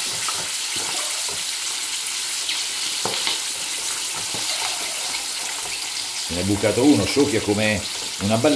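Oil sizzles and crackles steadily as peppers fry in a pan.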